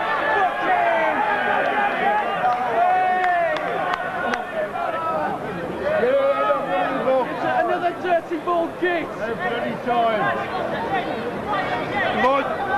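A football crowd chants and shouts outdoors.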